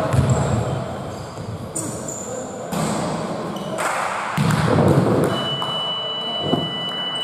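A basketball bounces on the floor in a large echoing hall.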